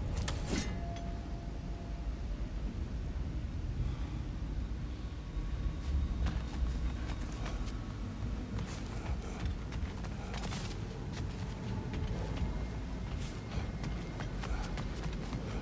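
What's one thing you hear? Heavy footsteps thud on stone at a walking pace.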